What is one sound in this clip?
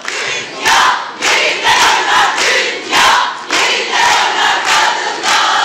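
A group of women sing loudly together.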